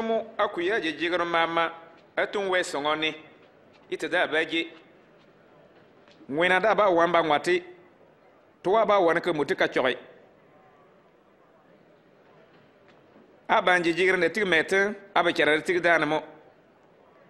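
A man speaks calmly and clearly, in short phrases with pauses.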